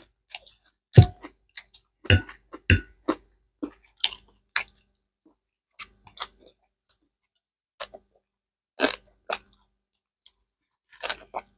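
A man loudly slurps noodles close up.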